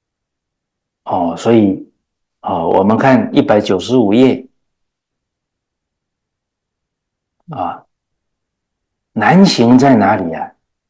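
An older man speaks calmly into a microphone, in short phrases with pauses.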